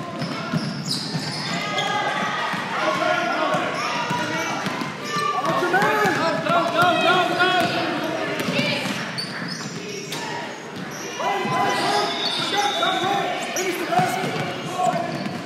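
Young girls shout and call out loudly.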